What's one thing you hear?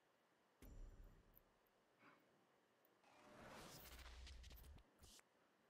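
Video game effects whoosh and thud.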